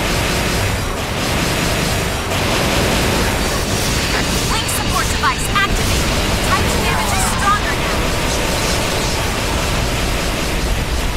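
Metallic slashes and blasts crash over a loud, roaring rumble.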